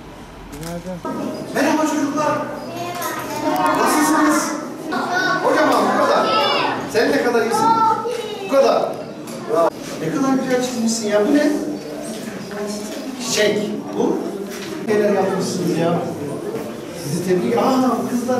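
Men talk with animation in a room with some echo.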